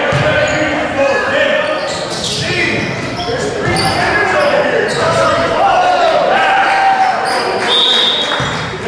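A crowd of people talks and shouts in a large echoing hall.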